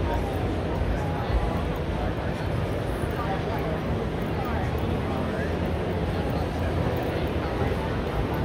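A crowd murmurs with many overlapping voices in a large echoing hall.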